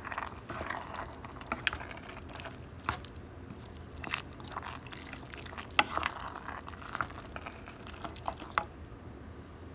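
A wooden spoon tosses saucy spaghetti in a pot with wet squelches and light knocks.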